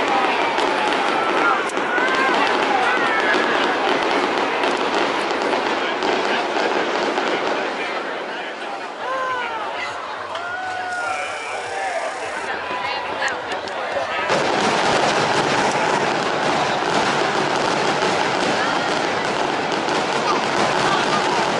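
Fireworks boom and crackle overhead.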